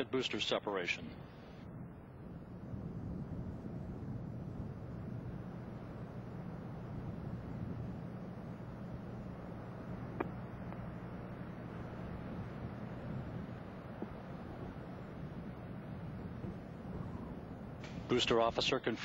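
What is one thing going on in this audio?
A rocket engine roars with a low, steady rumble.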